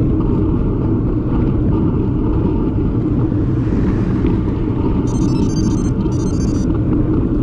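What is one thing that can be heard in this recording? Strong wind rumbles and buffets loudly outdoors.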